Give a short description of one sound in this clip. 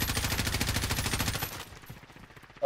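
A gun fires in a rapid automatic burst.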